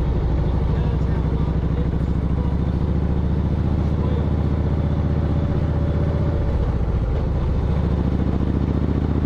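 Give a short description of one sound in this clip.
A motorcycle engine shifts pitch as the rider changes speed.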